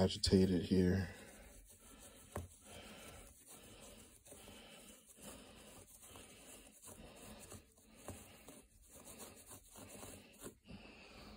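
A gloved hand rubs and scrubs at a carpet.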